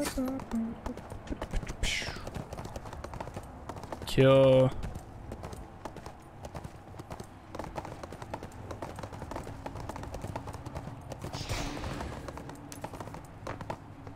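Hooves clop steadily on the ground.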